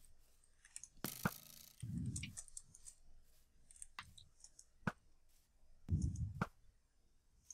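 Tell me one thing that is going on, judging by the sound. A bow twangs sharply as arrows are loosed.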